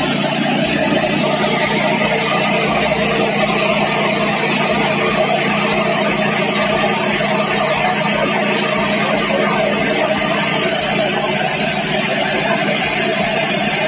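A rice milling machine runs with a steady loud whir.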